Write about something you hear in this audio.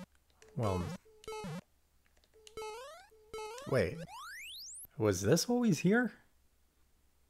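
Short electronic game bleeps and rising chirps play in quick bursts.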